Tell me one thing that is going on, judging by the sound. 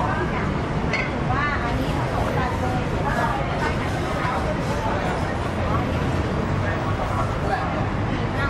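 Men and women chatter nearby and in the distance in a busy outdoor crowd.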